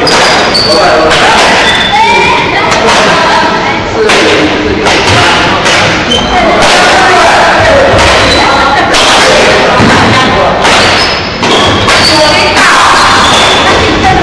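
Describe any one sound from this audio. Badminton rackets strike a shuttlecock in a large echoing hall.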